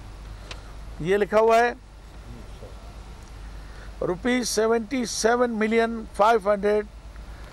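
A middle-aged man speaks loudly into microphones, reading out.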